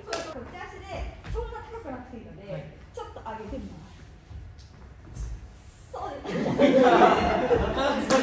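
Shoes thud and step on a wooden floor.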